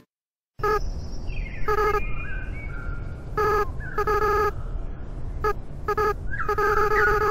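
Short electronic blips chirp in quick bursts as game dialogue text types out.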